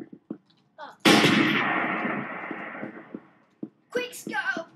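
A sniper rifle fires a single loud shot that echoes away.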